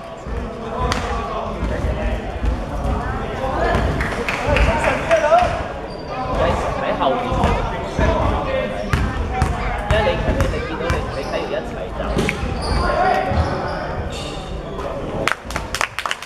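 Young men shout and call out to each other across a large echoing hall.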